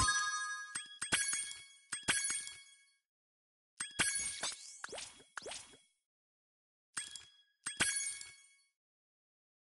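Game menu chimes and whooshes play as selections change.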